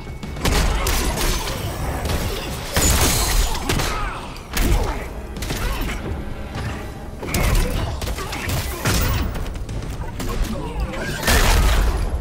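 Heavy punches and kicks land with loud, booming thuds.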